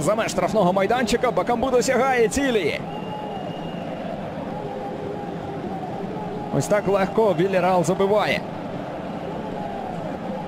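A large crowd cheers in a stadium.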